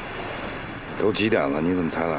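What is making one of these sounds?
A middle-aged man speaks slowly, close by.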